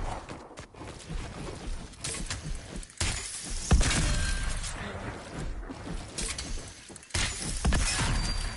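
Building pieces clack into place in quick succession.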